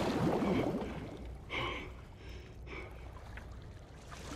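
Water sloshes and laps as a swimmer paddles along.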